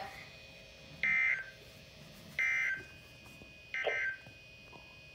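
A weather radio sounds three short, high electronic beeps.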